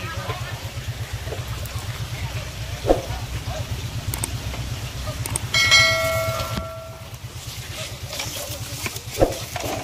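Dry leaves and grass rustle as hands push through them close by.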